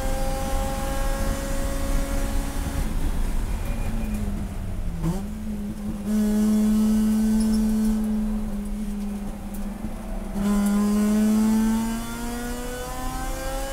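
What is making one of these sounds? Road and wind noise rumble steadily inside the car.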